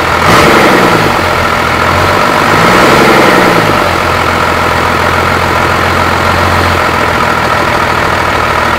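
An engine runs loudly up close, revving up and down.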